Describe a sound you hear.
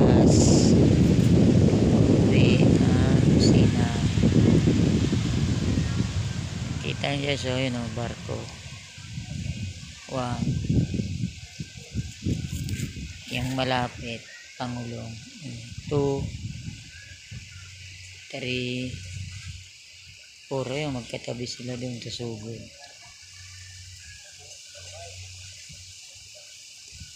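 Small waves lap gently against a rocky shore.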